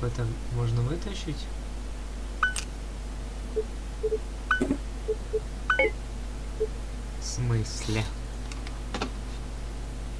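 Short soft clicks and blips sound as menu items are selected.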